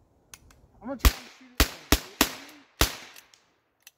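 Rifle shots crack sharply outdoors, one after another.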